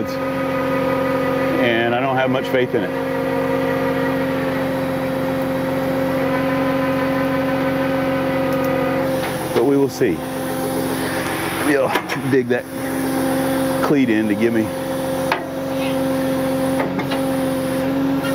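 A tow truck's winch drones with a steady pitch as it hauls in a cable.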